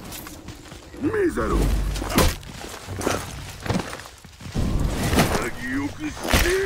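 Metal weapons clash and strike with sharp, ringing impacts.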